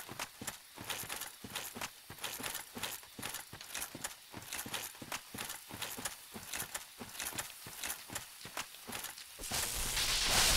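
Armoured footsteps thud steadily on the ground.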